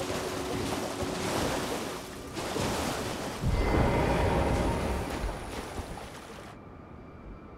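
A horse splashes through shallow water at a gallop.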